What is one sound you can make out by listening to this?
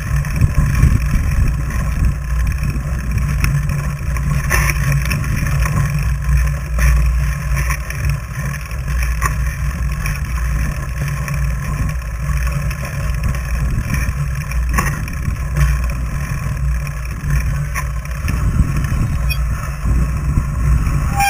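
Bicycle tyres crunch and hiss over packed snow.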